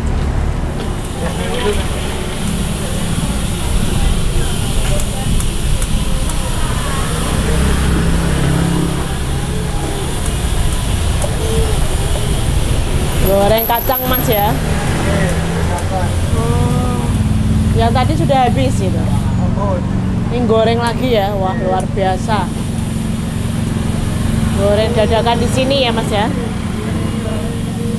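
Hot oil sizzles and crackles steadily.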